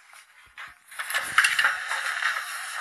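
A crowd of people shouts and jostles noisily.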